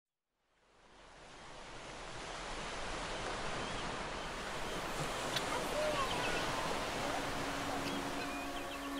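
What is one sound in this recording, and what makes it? Gentle waves wash onto a sandy shore.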